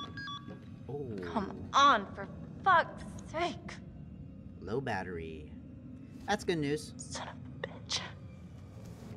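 A young woman speaks quietly and tensely.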